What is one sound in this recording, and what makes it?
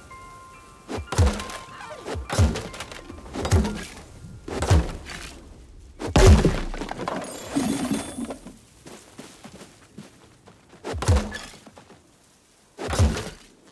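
An axe chops into a tree trunk with heavy thuds.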